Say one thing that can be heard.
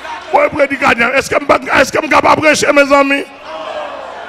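A man preaches loudly and with fervour into a microphone.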